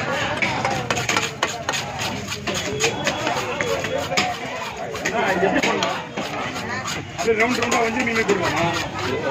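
A knife scrapes scales off a fish with quick, rasping strokes.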